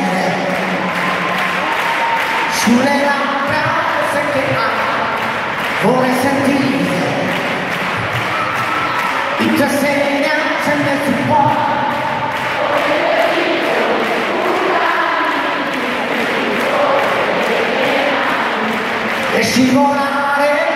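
A band plays loud pop music.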